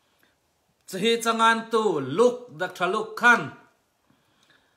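A middle-aged man speaks calmly and clearly into a close microphone.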